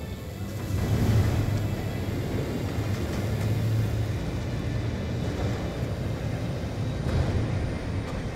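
Aircraft engines rumble low and steady.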